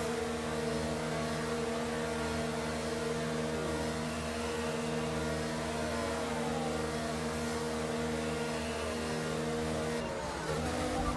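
A racing car engine hums steadily at low speed.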